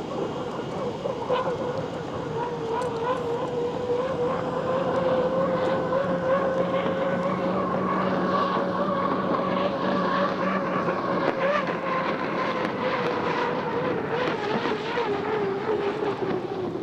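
Spray hisses and rushes behind a speeding boat.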